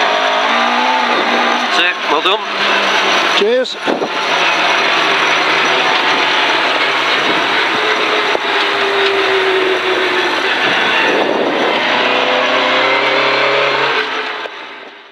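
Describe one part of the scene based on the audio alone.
Tyres crunch and rumble over a gravel track.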